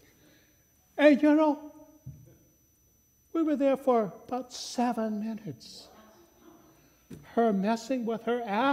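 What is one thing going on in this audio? An older man speaks with animation through a microphone in a large echoing room.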